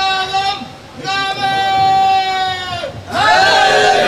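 A crowd of men beat their chests in rhythm.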